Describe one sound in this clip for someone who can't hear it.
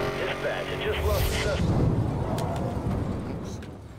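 A car crashes with a loud metallic smash.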